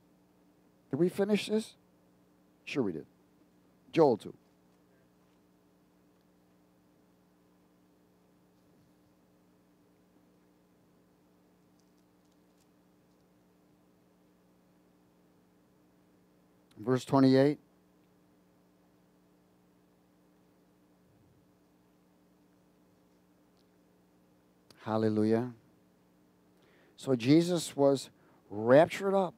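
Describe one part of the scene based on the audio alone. A man speaks in short bursts through a headset microphone, with long pauses between.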